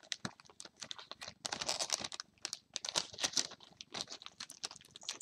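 A foil wrapper crinkles and rustles close by.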